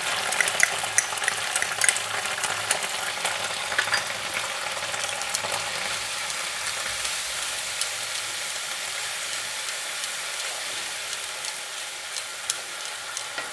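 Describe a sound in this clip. A spatula scrapes against a pan.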